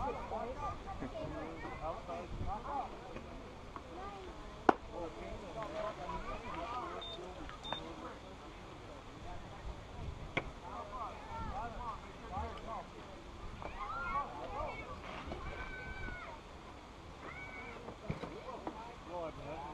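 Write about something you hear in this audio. Children and adults chatter and call out across an open field.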